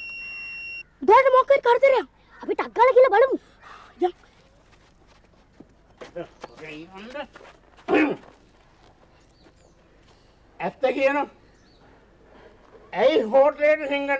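A young boy speaks urgently up close.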